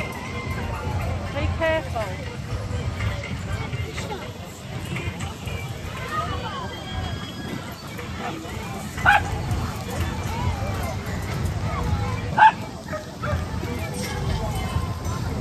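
People in an outdoor crowd chatter.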